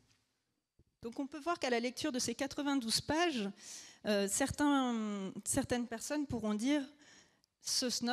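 A man speaks calmly over a microphone in a large hall.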